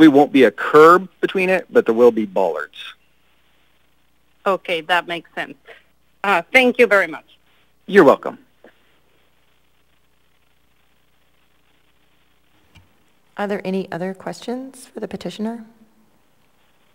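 A woman speaks calmly through a microphone, with pauses.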